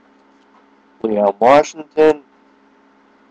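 A young man speaks briefly and casually close to a microphone.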